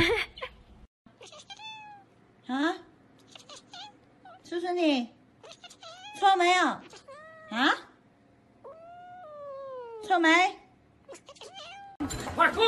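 A kitten meows loudly in drawn-out, bending cries.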